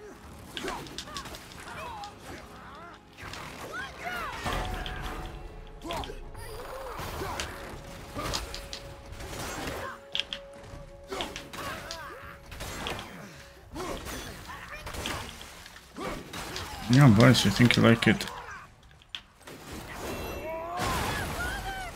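Weapons clash and strike with sharp, heavy blows.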